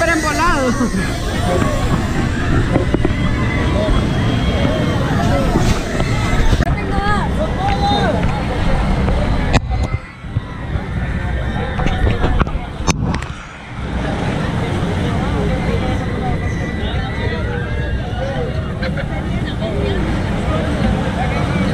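A crowd of young people chatters and shouts nearby, outdoors.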